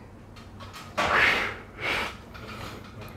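A young man exhales a long breath.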